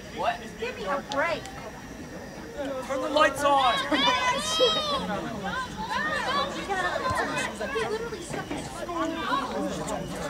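A crowd of young spectators shouts and cheers close by.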